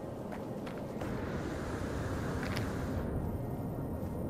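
A jetpack whooshes briefly.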